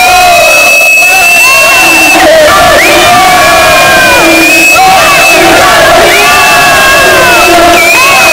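Young men shout and cheer loudly in an echoing hall.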